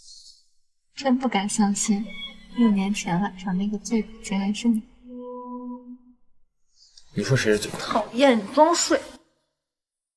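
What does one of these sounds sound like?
A young woman speaks softly and teasingly, close by.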